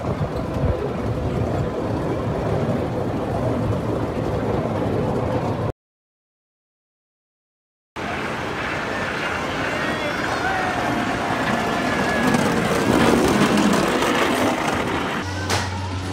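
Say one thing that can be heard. A small ride car rumbles along a wooden track.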